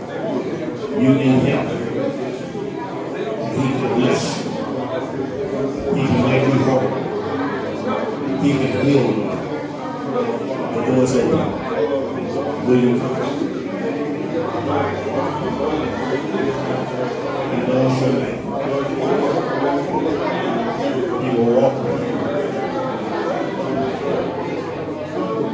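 A man speaks loudly to a crowd.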